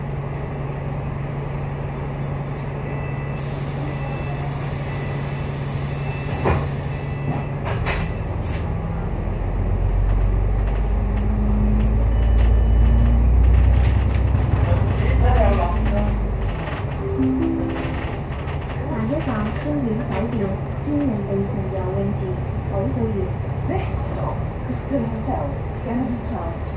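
A tram engine hums steadily while rolling along the tracks.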